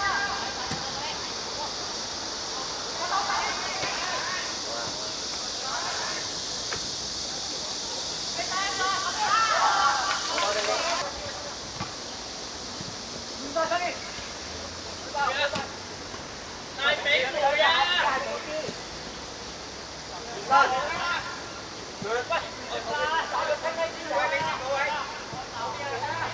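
Boys shout and call to each other outdoors.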